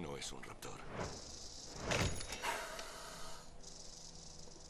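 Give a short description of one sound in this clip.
A snake slithers through sand with a soft hiss.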